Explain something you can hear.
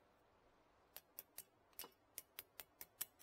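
A metal tool taps sharply against metal several times.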